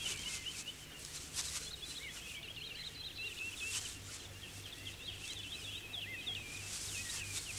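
Young wild dogs twitter and squeak in high chirps.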